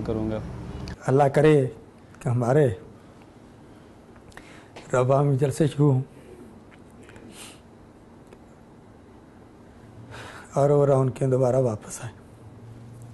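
An older man speaks calmly into a close microphone, with pauses.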